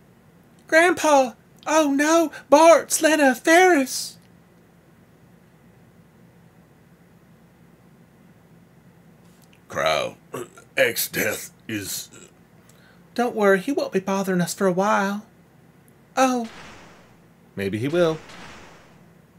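A man talks with animation into a close microphone, in bursts and pauses.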